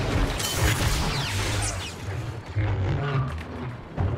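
A lightsaber hums and swooshes.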